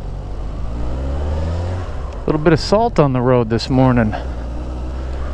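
A motorcycle engine revs up and down sharply through the gears.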